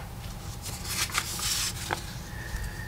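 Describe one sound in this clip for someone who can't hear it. A sheet of paper rustles as it is turned.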